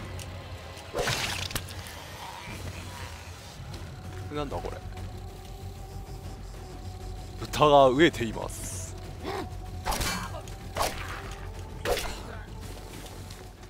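Heavy blows strike flesh during a fight.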